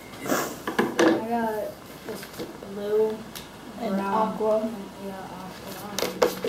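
A young girl talks and reads aloud nearby.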